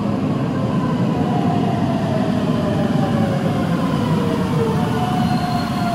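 Train brakes squeal.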